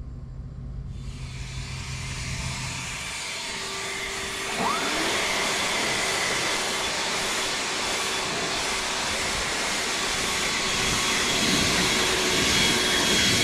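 A leaf blower roars steadily close by.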